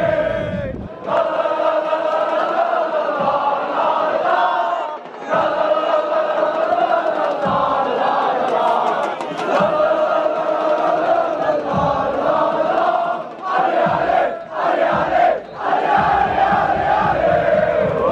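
A large crowd of fans chants loudly in unison, close by, outdoors.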